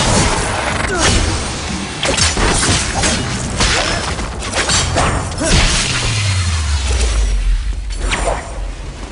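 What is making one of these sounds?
Gunshots crack and explosions burst.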